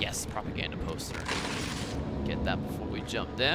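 A paper poster is torn off a wall.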